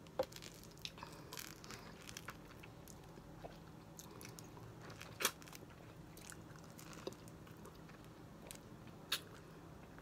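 A young woman chews noisily with wet smacking sounds.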